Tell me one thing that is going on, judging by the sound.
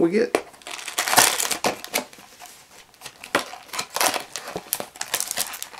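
A cardboard box flap is pulled open.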